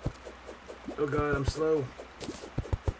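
A man speaks briefly and casually close to a microphone.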